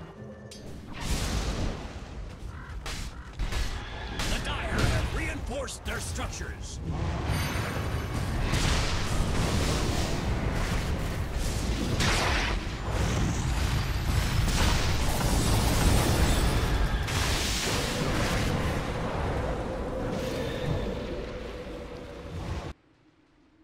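Magic blasts and combat effects crackle and boom in a video game battle.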